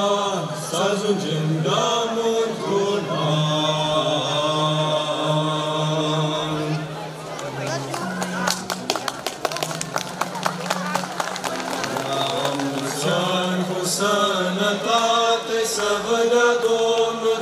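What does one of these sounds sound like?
A group of young men sing together in harmony through microphones.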